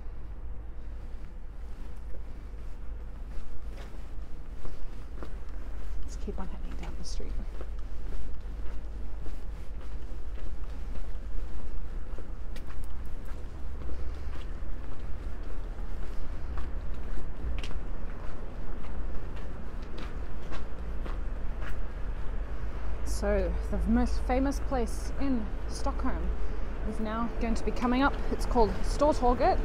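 Footsteps crunch slowly on snowy cobblestones.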